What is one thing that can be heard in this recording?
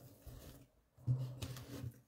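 Paper rustles softly as a hand moves it.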